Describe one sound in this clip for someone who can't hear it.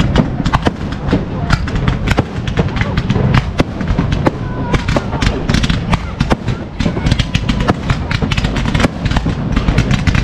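Fountain fireworks hiss and spray with rapid crackling.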